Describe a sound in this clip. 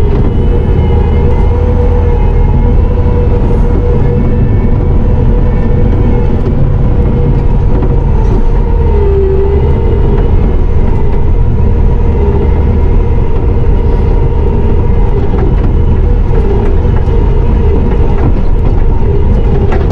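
A metal loader bucket clanks and rattles over rough ground.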